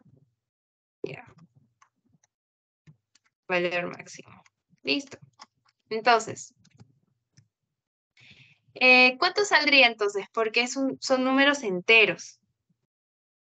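A young woman speaks calmly in short phrases over an online call.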